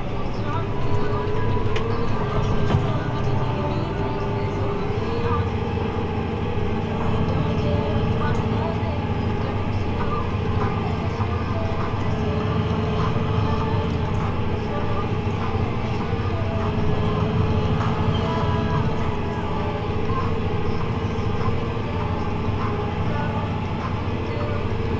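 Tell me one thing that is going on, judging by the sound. A tractor engine rumbles steadily, heard from inside the cab.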